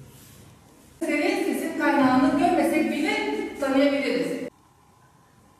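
A woman speaks clearly to a class in a quiet room.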